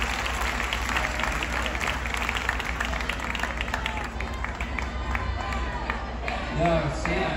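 An audience claps and cheers outdoors.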